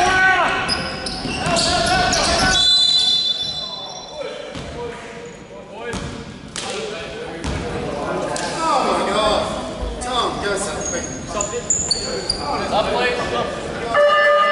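Young players shout and call out to each other.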